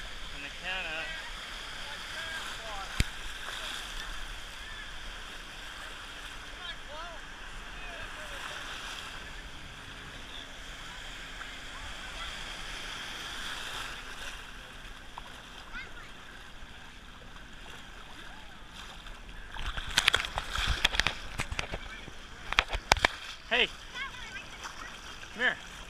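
Water splashes as people wade through the sea.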